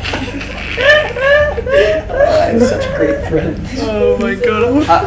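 A young man laughs loudly and screams nearby.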